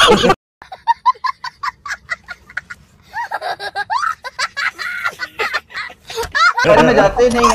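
A young boy laughs loudly and shrieks close by.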